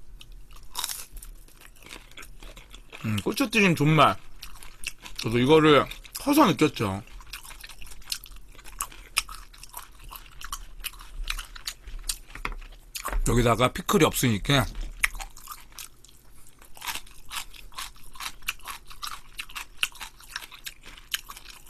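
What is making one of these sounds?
A young man chews and slurps food close to a microphone.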